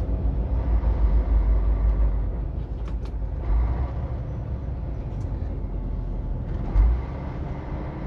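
A large truck rumbles past close by.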